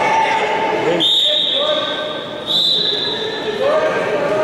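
A referee's whistle blows sharply twice.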